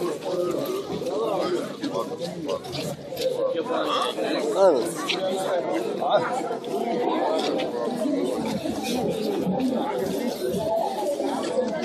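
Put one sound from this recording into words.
A crowd of men and women chatters loudly outdoors, close by.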